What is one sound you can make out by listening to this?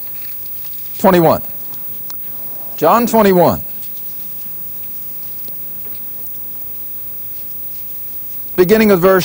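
An elderly man speaks through a microphone in short bursts, with pauses between.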